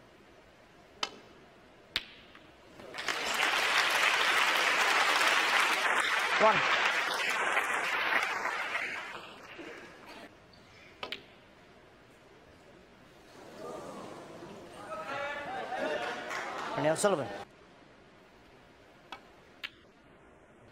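Snooker balls click sharply as a cue strikes and balls collide.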